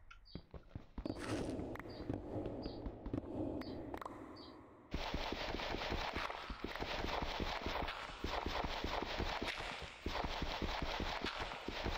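A pickaxe digs repeatedly into gravel and stone.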